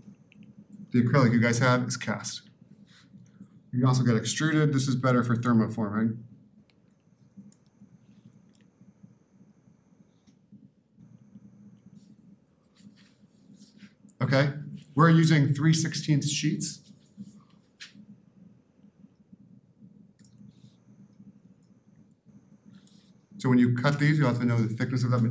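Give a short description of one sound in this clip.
A man lectures through a microphone, speaking in short bursts with pauses.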